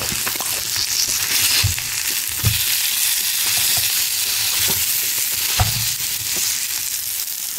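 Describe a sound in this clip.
A fork clinks and scrapes against food on a stone.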